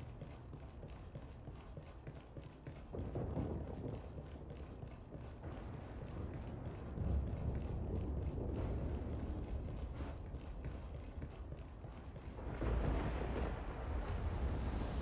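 Boots step quickly across a hard floor.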